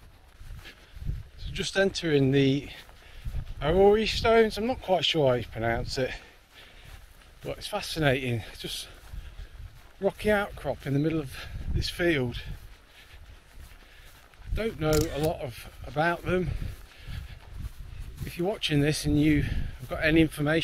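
A man speaks calmly and close to the microphone.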